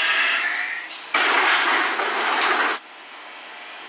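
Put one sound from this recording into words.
Subway train doors slide open.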